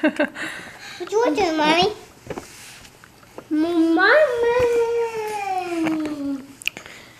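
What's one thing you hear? A baby babbles and squeals in long, rising and falling cries close by.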